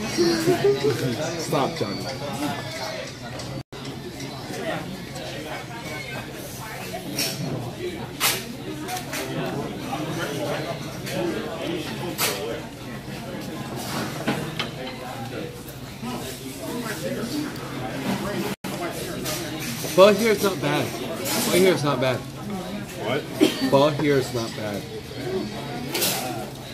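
A busy room of diners chatters in the background.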